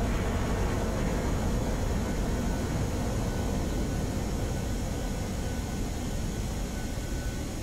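A falling bomb rushes through the air with a steady, low roar of wind.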